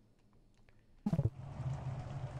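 A soft whoosh sounds as a game menu closes.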